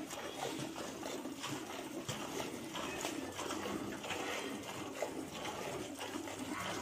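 Milk squirts in rhythmic spurts into a metal pail.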